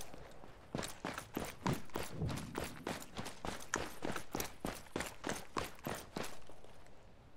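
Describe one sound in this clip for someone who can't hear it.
Footsteps walk quickly on hard ground.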